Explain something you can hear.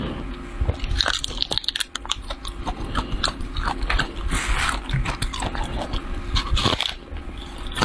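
A young woman crunches loudly on food close to a microphone.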